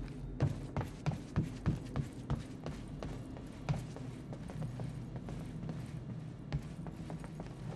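Footsteps clang on metal stairs and then thud on a hard floor.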